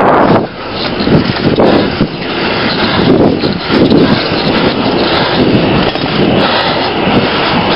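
Wind buffets the microphone outdoors in loud gusts.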